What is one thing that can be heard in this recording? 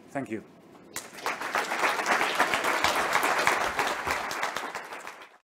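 An audience claps loudly in a large hall.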